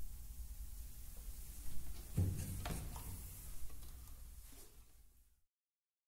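A small string ensemble's last chord rings out and fades.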